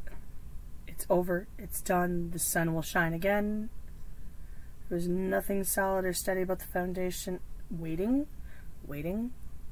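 A woman speaks slowly and thoughtfully, close by.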